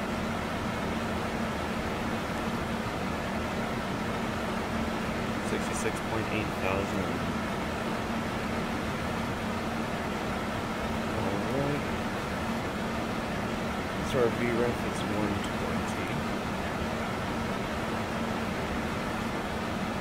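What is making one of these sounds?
Jet engines drone steadily.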